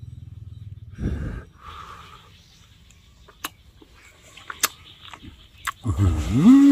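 A young man chews and smacks his lips loudly, close up.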